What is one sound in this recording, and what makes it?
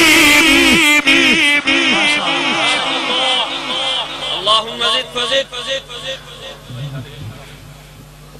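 A large crowd chants together and slowly fades.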